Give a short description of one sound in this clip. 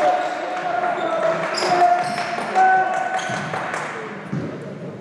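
A man shouts instructions loudly.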